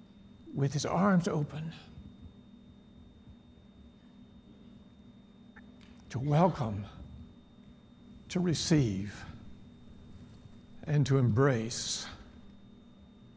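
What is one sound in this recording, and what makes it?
An elderly man speaks slowly and with emphasis through a microphone, with long pauses.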